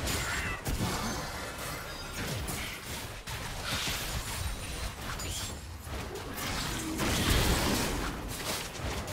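Game spell effects crackle and whoosh during a fight.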